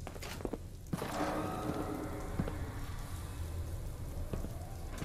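A pressurised pod door hisses open.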